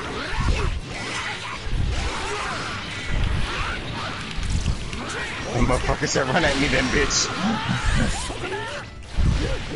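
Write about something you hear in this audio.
Energy blasts boom and crackle.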